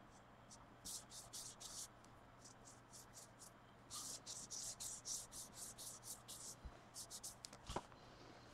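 A stiff brush flicks paint in quick, soft spatters.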